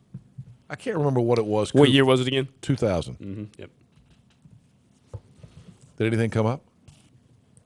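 A middle-aged man talks animatedly and loudly into a close microphone.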